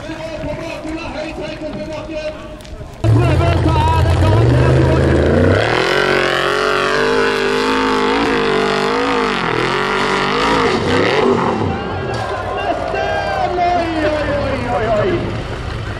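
An off-road buggy's engine roars and revs hard up and down, close by.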